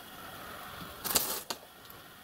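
A heavy metal model slides and knocks on a table.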